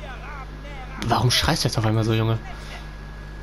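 A young man speaks boldly and loudly.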